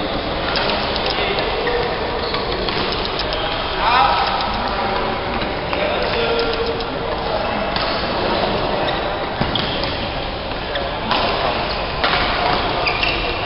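Voices of many players echo in a large hall.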